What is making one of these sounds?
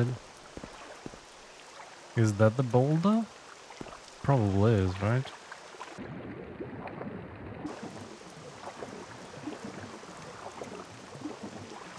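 Water splashes gently as someone swims.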